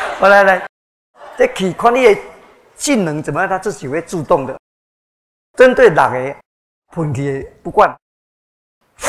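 An elderly man speaks with animation through a microphone and loudspeakers in a large echoing hall.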